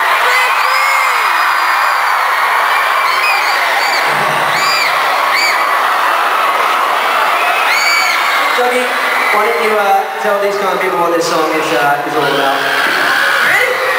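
A crowd screams and cheers loudly, close by.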